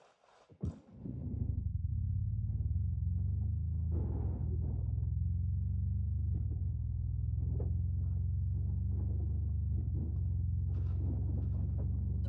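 A vehicle engine rumbles steadily as it drives over rough ground.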